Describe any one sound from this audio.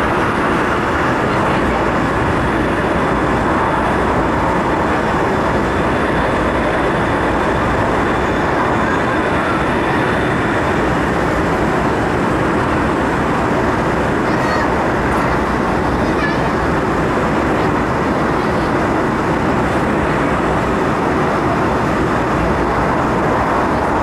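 A train rumbles and roars steadily along the track.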